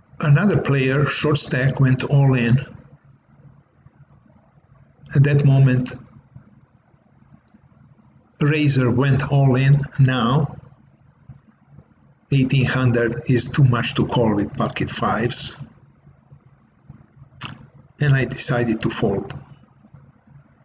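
An elderly man talks calmly and closely into a microphone, in bursts with pauses.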